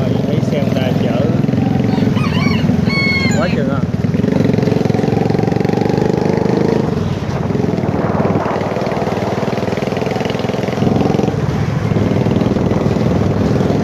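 Other motorbikes putter past in the street.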